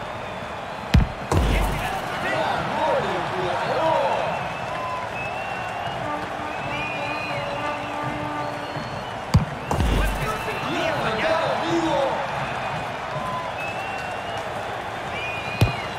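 A ball is kicked hard.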